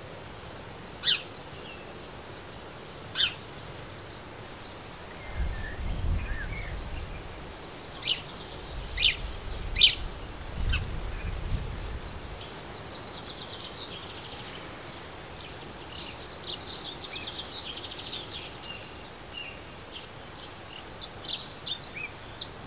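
Small birds chirp and twitter nearby outdoors.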